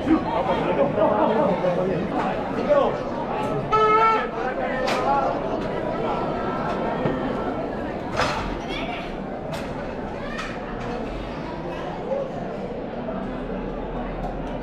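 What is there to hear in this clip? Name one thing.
A crowd of people chatters loudly outdoors.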